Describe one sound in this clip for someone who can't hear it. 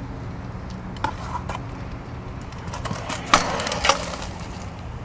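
A scooter's metal deck clatters and grinds along a concrete ledge.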